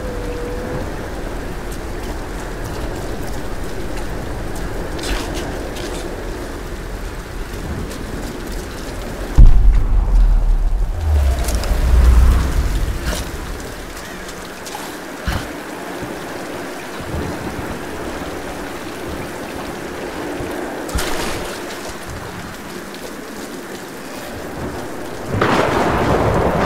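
Footsteps patter over wet ground and wooden boards.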